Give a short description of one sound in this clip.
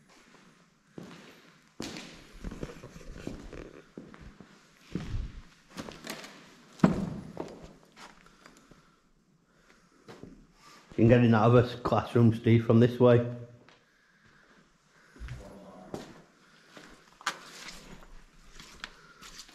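Footsteps crunch over broken debris on a hard floor.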